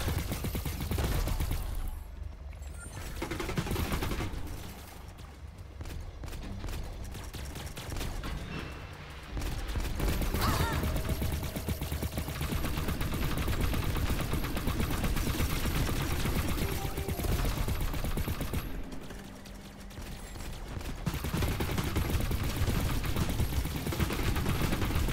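Rapid blaster shots fire in quick bursts.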